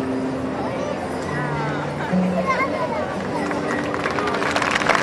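A woman sings into a microphone over a band.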